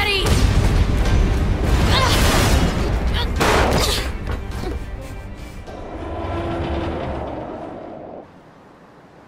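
A huge machine burns and rumbles with loud explosions.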